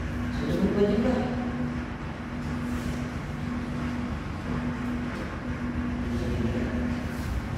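Several teenagers talk quietly among themselves nearby, in a room with a slight echo.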